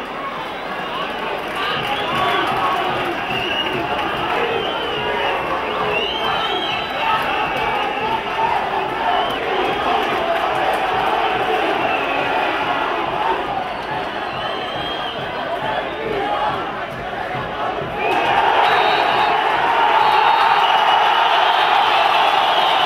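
A large crowd chants and cheers steadily throughout, rising to a louder roar near the end.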